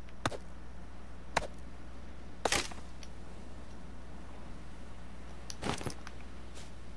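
A knife chops sharply into a thin tree trunk.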